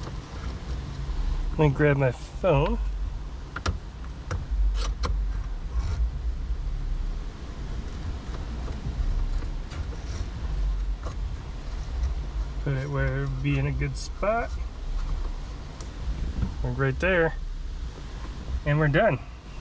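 A plastic phone mount clicks and snaps into place.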